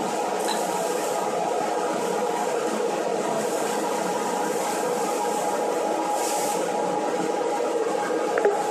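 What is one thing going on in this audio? A blower machine roars steadily.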